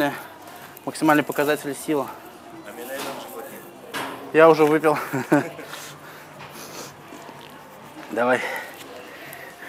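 A young man speaks casually and close by.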